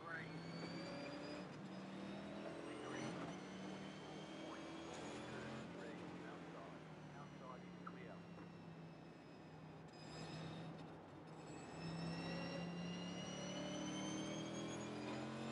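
A race car engine drones steadily, then revs higher as it speeds up.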